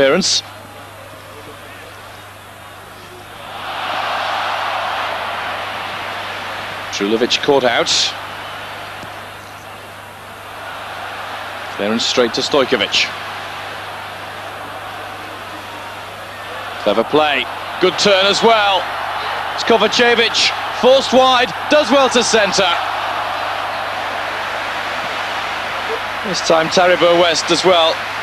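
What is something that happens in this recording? A large stadium crowd roars in a steady wash of noise that swells and falls.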